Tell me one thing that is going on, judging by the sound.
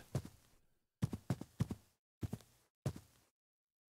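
An axe chops into hard crystal with sharp knocks.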